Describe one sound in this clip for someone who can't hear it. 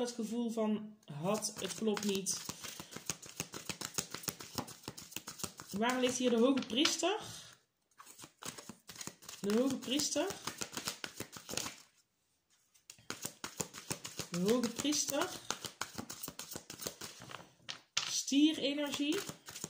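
Playing cards riffle and flick as they are shuffled by hand, close by.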